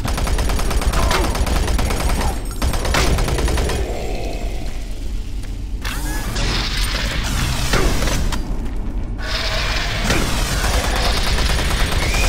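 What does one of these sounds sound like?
A shotgun fires in loud blasts.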